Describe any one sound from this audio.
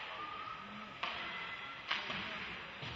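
A puck cracks against a stick or the boards.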